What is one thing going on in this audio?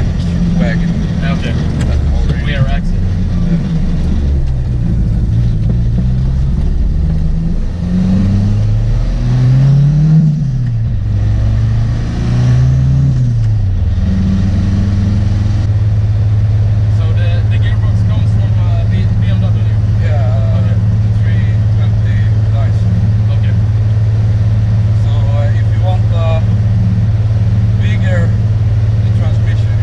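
A car engine hums and revs up and down.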